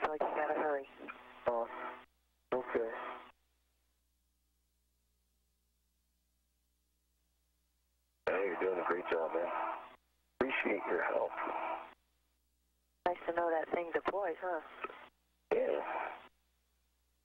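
A man speaks in short bursts over a crackly radio link.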